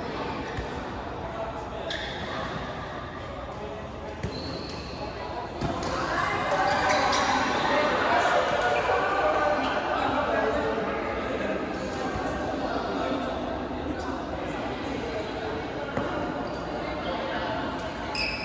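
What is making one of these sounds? Many people chatter in the background of a large echoing hall.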